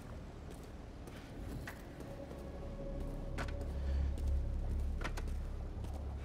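Footsteps tap on a hard floor.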